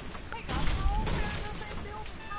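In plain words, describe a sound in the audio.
A pickaxe strikes and breaks through wood.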